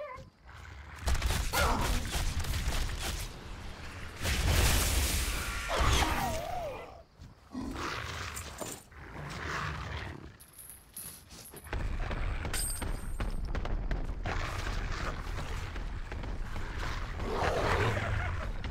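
Blades slash and strike repeatedly in a fight.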